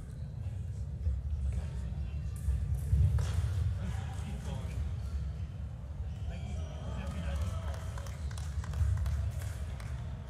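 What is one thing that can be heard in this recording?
Fencers' feet thump and squeak on the floor.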